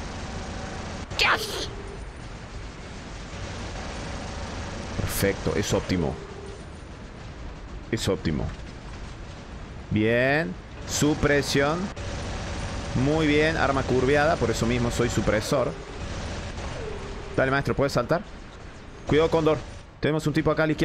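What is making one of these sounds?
Weapons fire and explode in a video game.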